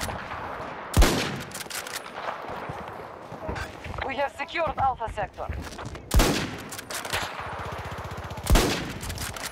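A rifle fires loud single shots with a sharp echo.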